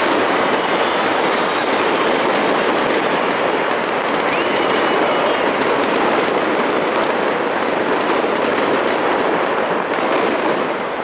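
A large crowd roars and chants in the distance.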